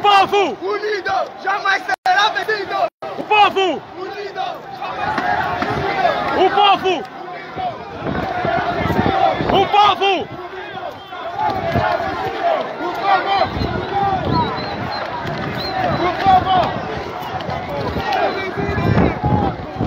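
A crowd of young men shouts and chants outdoors.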